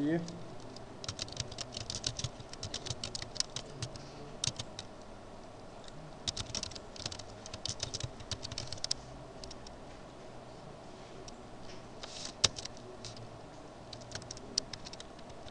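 Computer keys clack in quick bursts of typing.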